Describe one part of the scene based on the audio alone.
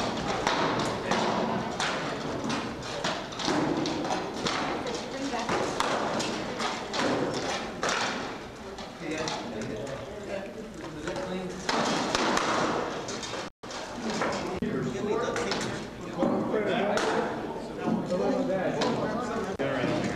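Armour clanks and rattles as two fighters grapple.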